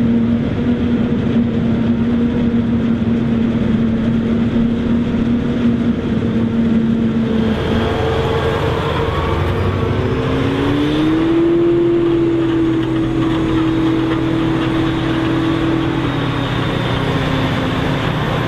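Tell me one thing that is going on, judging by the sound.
A forage harvester roars loudly as it chops maize.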